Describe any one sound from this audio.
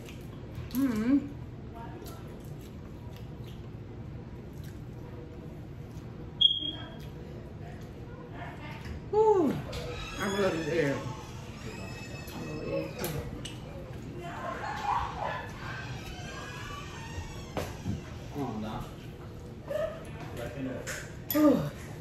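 Crab shells crack and snap between fingers.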